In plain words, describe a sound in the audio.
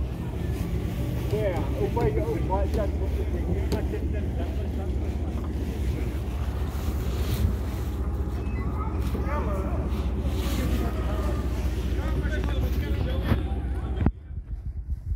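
Men and women chatter on a crowded boat nearby.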